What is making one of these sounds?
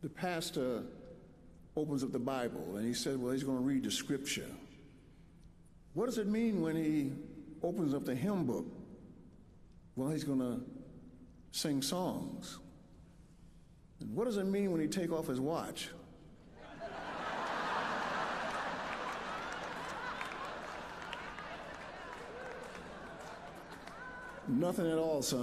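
An elderly man speaks slowly and with feeling into a microphone.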